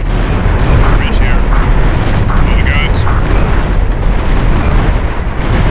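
A ship churns through water with a low rumble.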